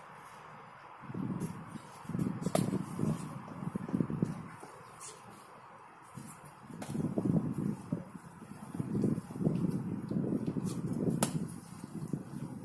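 Feet shuffle and scuff on artificial turf.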